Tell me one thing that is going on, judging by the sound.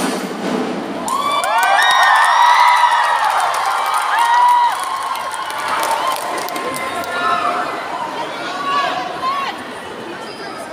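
A marching band plays brass horns in a large echoing hall.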